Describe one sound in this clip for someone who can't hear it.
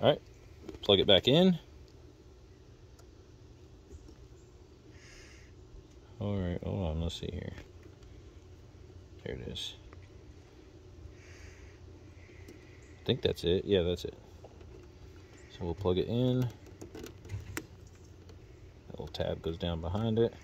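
A plastic connector clicks and rattles in the fingers.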